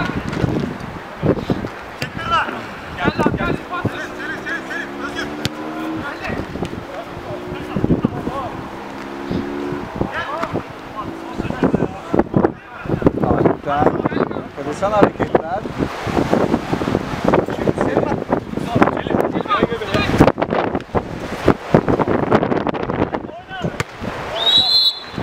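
Men shout and call out outdoors.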